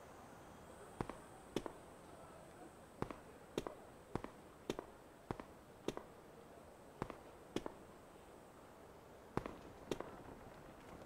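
Footsteps tap at a steady pace on a hard floor.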